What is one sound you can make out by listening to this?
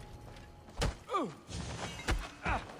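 A man groans in pain as he is struck down.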